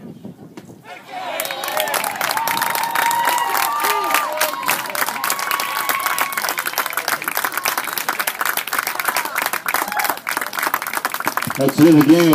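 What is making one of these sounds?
A crowd cheers and whoops outdoors.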